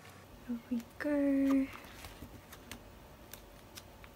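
A binder page flips over.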